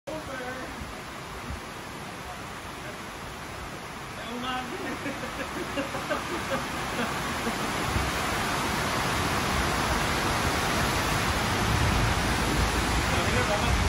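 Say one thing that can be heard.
Steady rain pours outdoors and grows louder.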